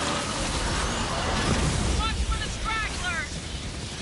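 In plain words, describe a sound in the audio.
An explosion booms and crackles with fire.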